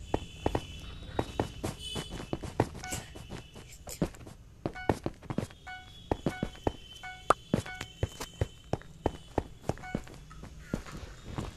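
Short game clicks sound as blocks are placed, one after another.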